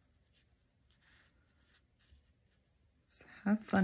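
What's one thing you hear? A paintbrush swishes softly across paper.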